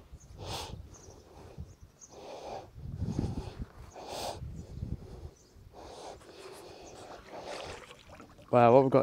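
A rope rasps through gloved hands as it is hauled in.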